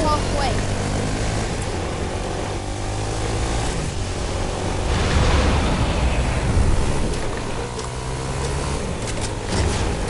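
A small vehicle engine hums and drones steadily.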